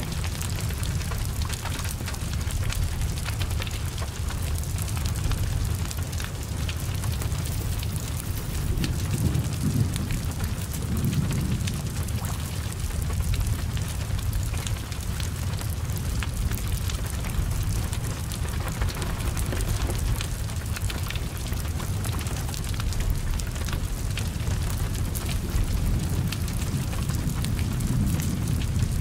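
Fire crackles and pops with sharp snaps.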